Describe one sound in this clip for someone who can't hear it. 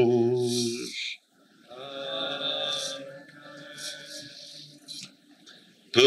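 A man chants in a steady, sung voice through a microphone.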